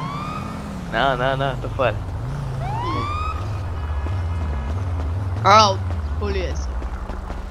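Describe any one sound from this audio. A young woman shouts in alarm nearby.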